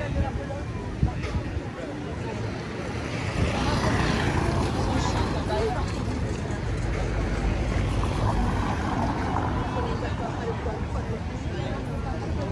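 A crowd of people chatters outdoors nearby.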